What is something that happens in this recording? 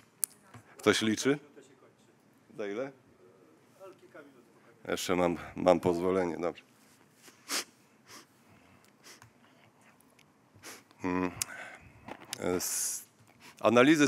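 A middle-aged man speaks calmly into a microphone, giving a talk.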